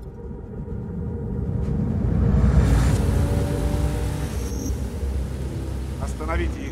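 A car engine rumbles as the car drives along a wet road.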